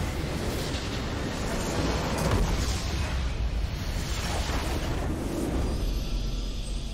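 A large crystal structure explodes with a booming crash.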